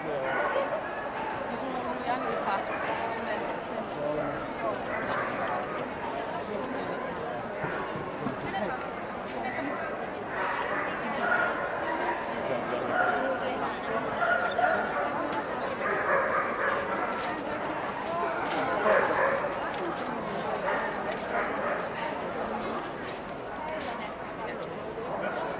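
A crowd of people chatters all around in a large echoing hall.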